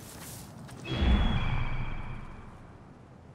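A large bird's wings whoosh with a deep rush of air.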